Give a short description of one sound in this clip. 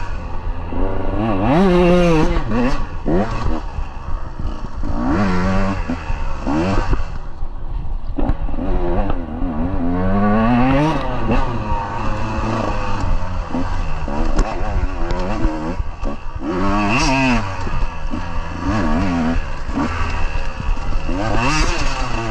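A dirt bike engine revs up and down loudly, close by.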